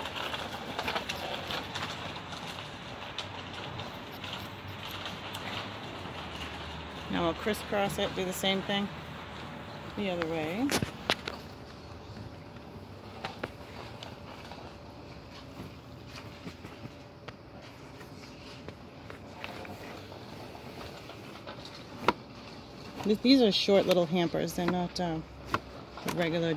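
Thin fabric rustles and crinkles as it is handled.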